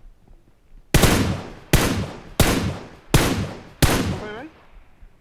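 A rifle fires several loud shots in quick succession.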